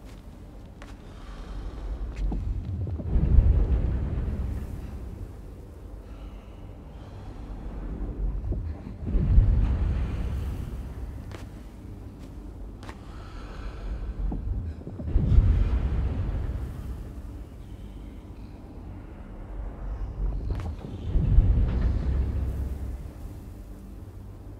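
A heavy cart rumbles in slow, swelling surges as it is pushed, each surge ending in a deep thud.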